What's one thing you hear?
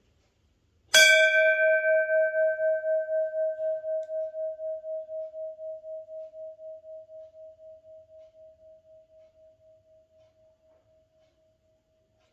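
A large brass bell is struck once and rings on, slowly fading away.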